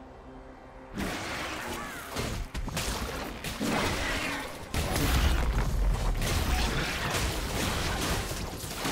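Magic blasts and impacts crackle in quick bursts.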